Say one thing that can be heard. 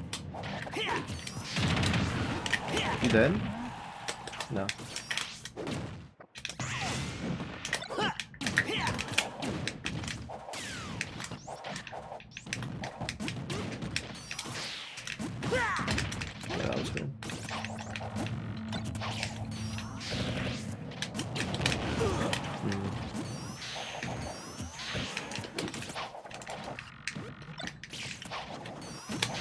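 Fighting game effects of punches, blasts and zaps crackle in quick bursts.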